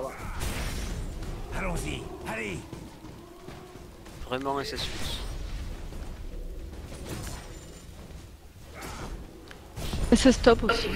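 Game spells crackle and blast in a fight.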